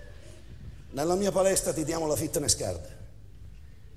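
A man speaks loudly and expressively.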